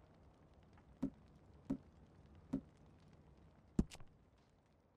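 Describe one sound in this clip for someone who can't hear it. Soft menu clicks tick one at a time.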